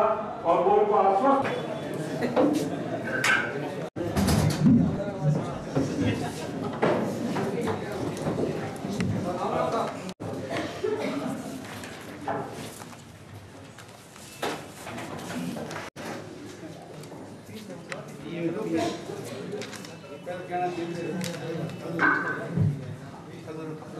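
Several men talk over one another in a room.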